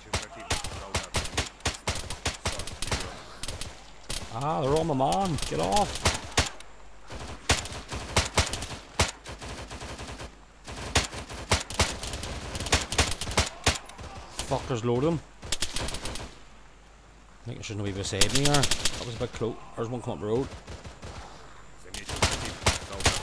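Rifle shots crack in quick bursts outdoors.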